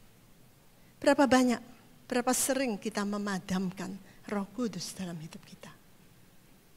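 A woman speaks with animation through a microphone over loudspeakers.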